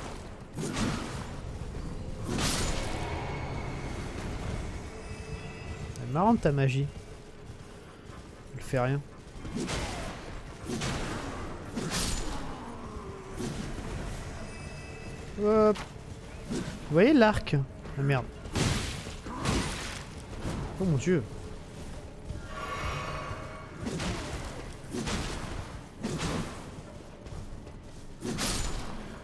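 A horse gallops with thudding hooves.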